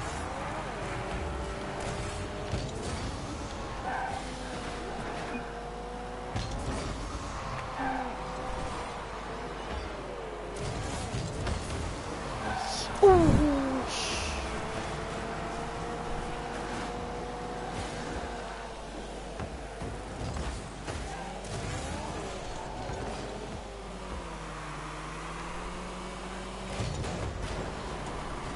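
A car engine hums and whines steadily, rising and falling in pitch.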